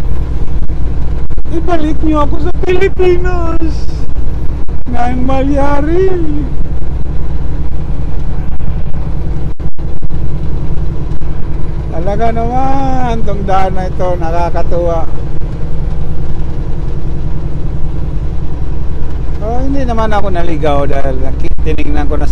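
A semi truck's diesel engine drones inside the cab while cruising on a highway.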